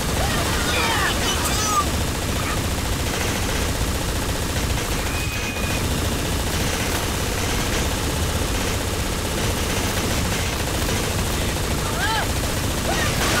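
Blaster guns fire rapid bursts of laser shots.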